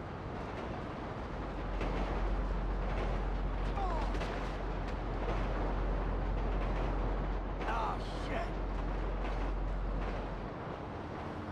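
A freight train rumbles heavily along the tracks.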